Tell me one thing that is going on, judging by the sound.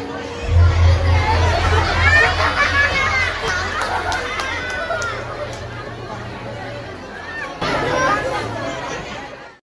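A crowd of children and adults chatters and calls out nearby, outdoors.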